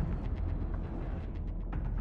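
A submarine propeller churns underwater.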